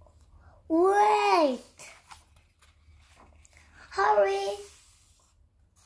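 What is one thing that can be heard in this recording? A child's hands turn the paper pages of a book.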